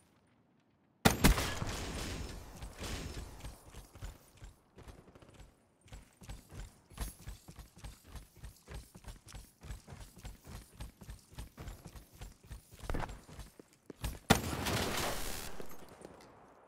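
A rifle fires a loud burst of shots.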